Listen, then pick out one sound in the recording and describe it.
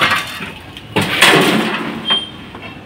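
Rubble clatters as it is tipped into a metal wheelbarrow.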